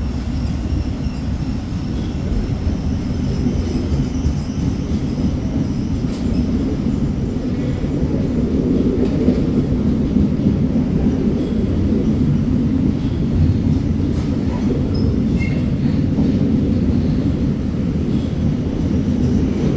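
A freight train rumbles steadily past close by.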